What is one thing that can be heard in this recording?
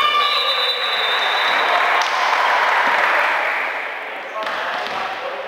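Spectators cheer and clap.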